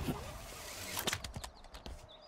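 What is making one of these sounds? A grappling line shoots out with a sharp metallic zip.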